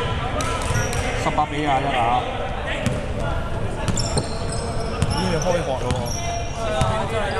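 Voices of young men call out in a large echoing hall.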